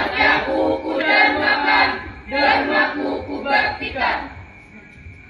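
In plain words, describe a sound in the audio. A group of young people chant loudly together outdoors.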